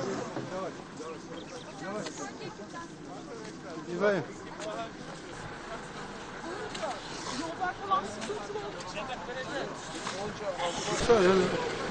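Several men talk at a distance outdoors.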